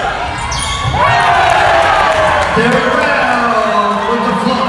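Spectators cheer and shout from the stands.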